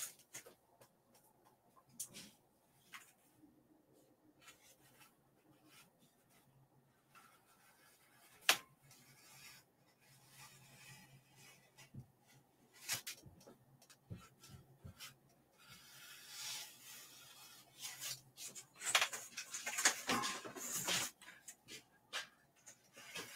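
A pen scratches and taps on paper close by.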